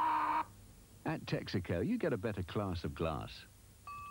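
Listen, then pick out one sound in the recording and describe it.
A man speaks calmly and close.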